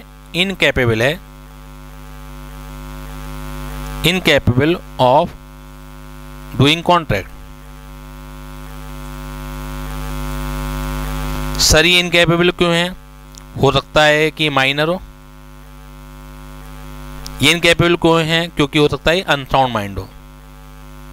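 A man speaks calmly through a headset microphone, in short bursts with pauses.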